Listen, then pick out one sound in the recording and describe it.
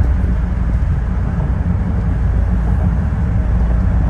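A passing car's tyres swish on the road.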